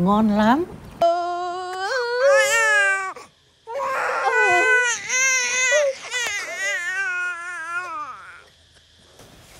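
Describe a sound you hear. A baby cries loudly.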